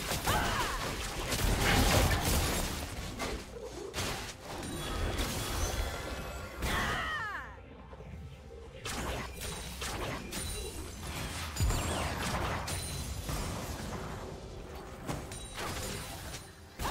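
Magic blasts crackle and whoosh in a video game battle.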